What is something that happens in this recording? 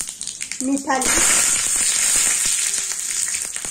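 Vegetables hiss loudly as they drop into hot oil.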